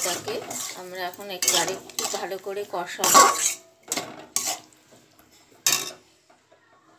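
A spatula scrapes and stirs food in a metal pot.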